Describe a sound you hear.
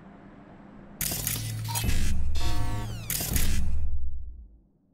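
A loud glitchy electronic whoosh and buzz sounds.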